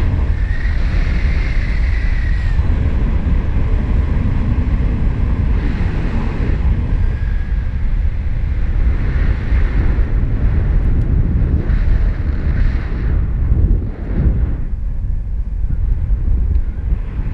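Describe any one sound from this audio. Strong wind rushes and buffets loudly past the microphone.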